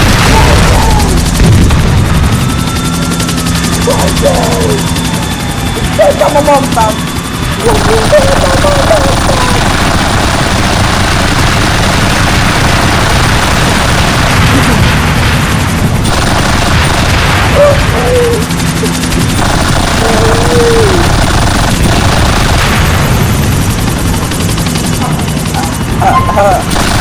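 A helicopter's rotor thumps loudly and steadily.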